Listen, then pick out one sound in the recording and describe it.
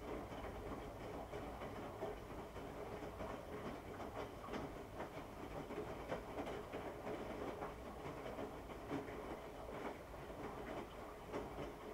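Wet clothes tumble and thud softly inside a washing machine drum.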